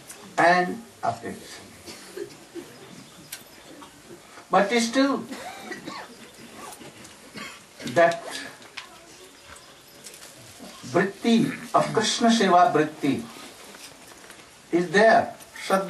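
An elderly man speaks calmly through a microphone in short phrases with pauses.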